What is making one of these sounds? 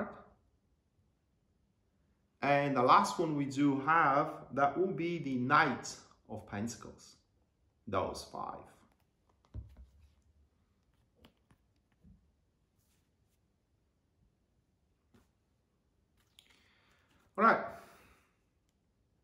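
Cards shuffle and slide in a man's hands.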